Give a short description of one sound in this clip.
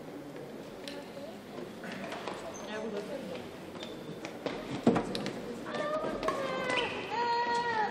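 A shuttlecock is struck sharply with rackets back and forth.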